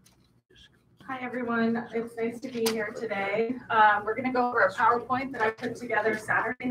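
A young woman speaks calmly into a microphone, heard through loudspeakers.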